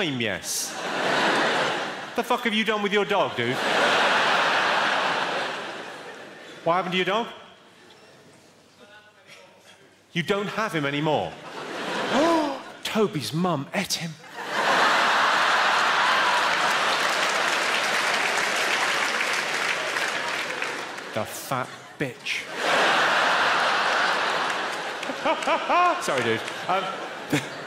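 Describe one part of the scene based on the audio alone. A large audience laughs loudly.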